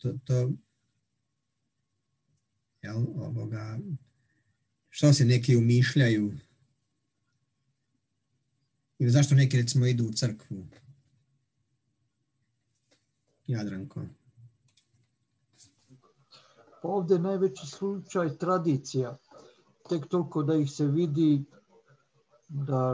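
An elderly man talks calmly over an online call, with pauses.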